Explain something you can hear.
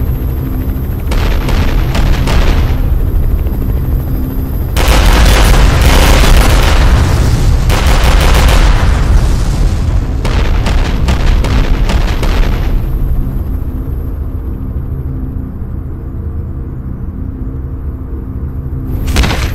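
Jet thrusters roar steadily.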